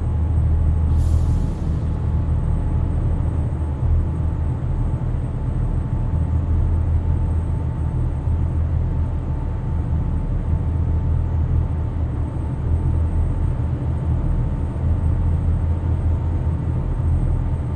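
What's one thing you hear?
A truck engine drones steadily at a low pitch.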